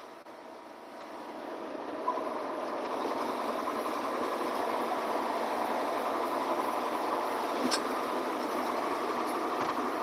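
A vehicle's engine hums steadily while driving.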